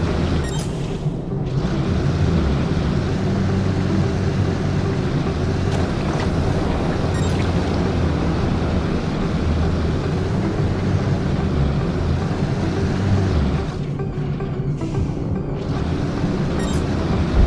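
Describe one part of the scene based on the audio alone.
A game vehicle's engine roars steadily.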